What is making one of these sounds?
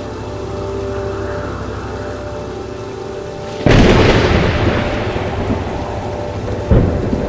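Heavy rain pours down outdoors.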